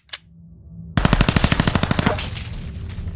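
An automatic gun fires a rapid burst of shots.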